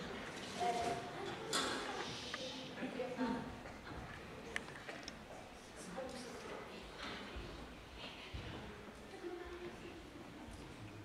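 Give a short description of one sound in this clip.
A young woman speaks with expression.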